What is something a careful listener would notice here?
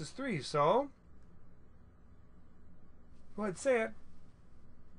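A middle-aged man speaks calmly and clearly into a microphone in short phrases.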